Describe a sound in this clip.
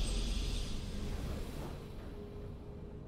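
A triumphant game fanfare rings out and fades away.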